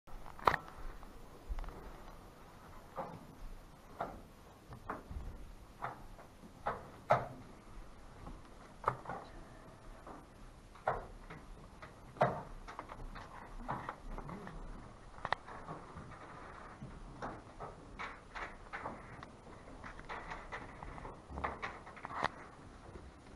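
Game pieces click and tap on a wooden board.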